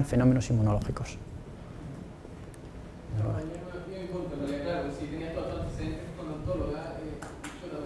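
A middle-aged man speaks calmly to an audience.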